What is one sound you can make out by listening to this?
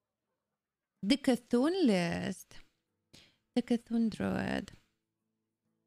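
A young woman talks casually into a microphone close by.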